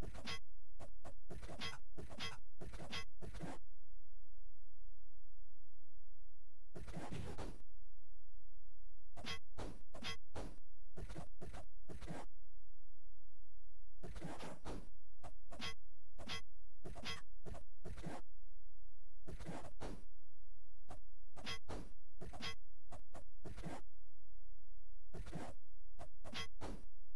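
Short electronic sound effects of a retro game crackle and buzz in quick bursts.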